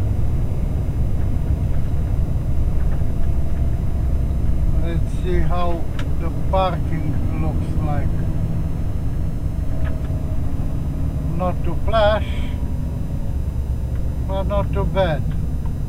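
Tyres roll steadily on the road at speed.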